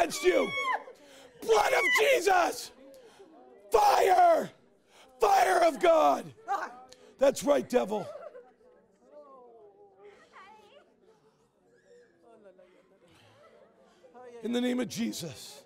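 A man shouts forcefully in short bursts.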